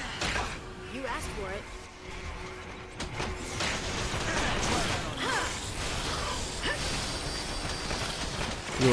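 Magic spells whoosh and shimmer.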